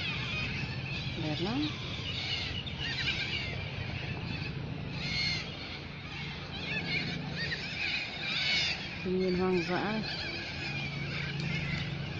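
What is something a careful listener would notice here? Birds chirp and twitter nearby.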